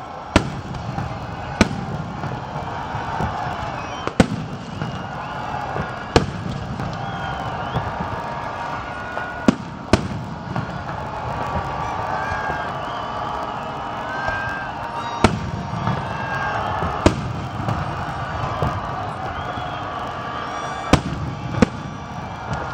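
Fireworks burst with sharp bangs, some near and some far off, outdoors.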